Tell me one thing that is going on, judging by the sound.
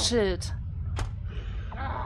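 A blade strikes a wooden shield with a heavy knock.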